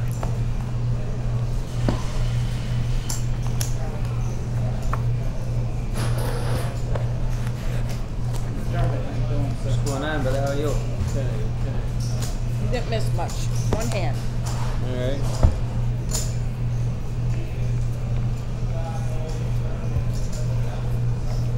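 Poker chips click against each other.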